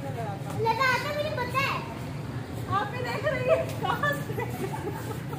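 Young children shout and chatter excitedly nearby.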